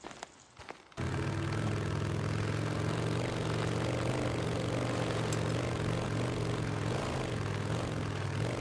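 A motorcycle engine hums steadily as the bike rides along.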